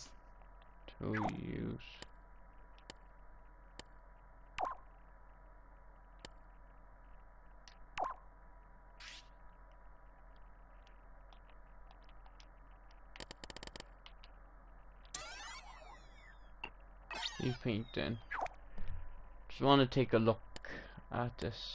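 Short game menu sounds chime as options open and close.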